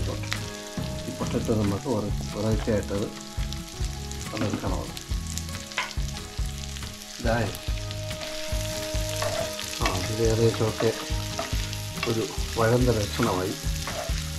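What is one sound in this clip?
A wooden spatula scrapes and stirs food in a metal pan.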